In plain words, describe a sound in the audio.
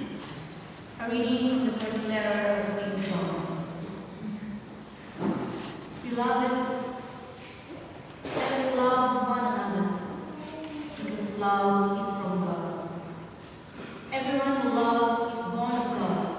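A congregation sings slowly together in a large echoing hall.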